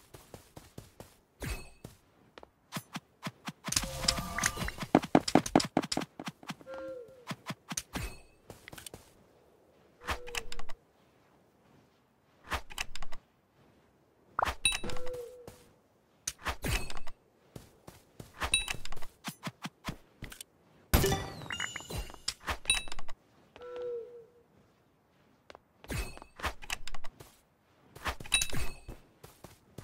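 Blocks thud and click as they are placed in quick succession.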